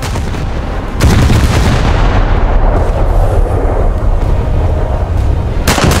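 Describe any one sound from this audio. Heavy naval guns fire with deep, rumbling booms.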